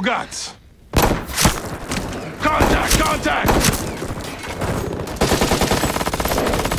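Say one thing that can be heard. Several rifles fire in rapid bursts.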